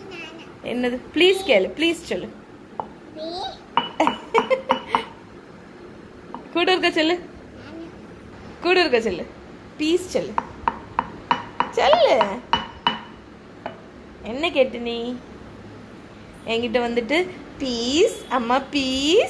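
An adult talks to a child nearby in a playful voice.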